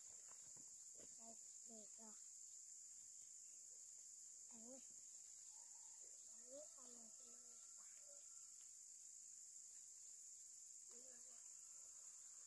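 Young girls talk softly nearby.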